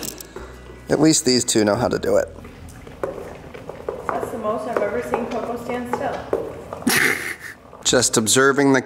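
Dogs lap and lick wetly at cups on a hard floor.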